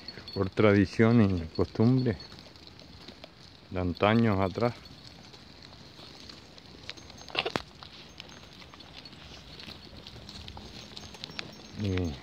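Hooves patter on a dirt path.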